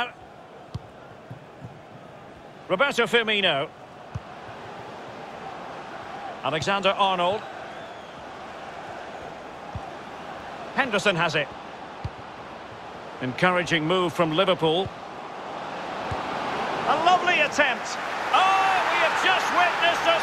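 A stadium crowd murmurs and swells into a roar as an attack nears goal.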